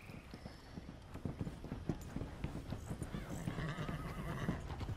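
Horse hooves clop on wooden planks and a dirt path.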